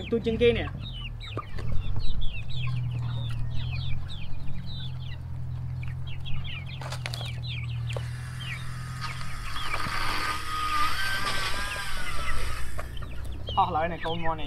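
Chickens peck at feed in a tray.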